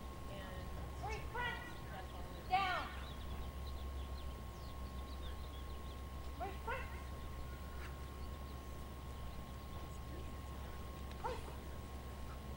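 A woman calls out sharp commands to a dog outdoors.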